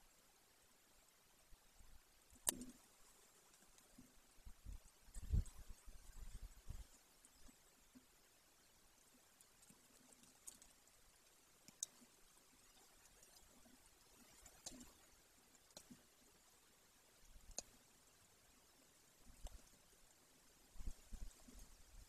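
An eagle tears at prey with its beak, with soft tugs and clicks.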